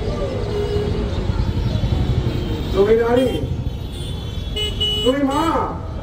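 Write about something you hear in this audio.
A man chants loudly into a microphone, heard through loudspeakers.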